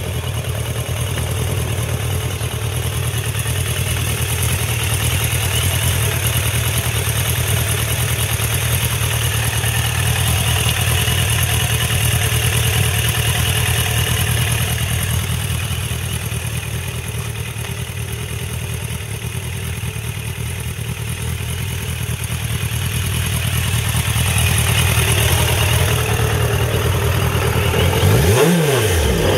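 A motorcycle engine idles with a steady deep rumble.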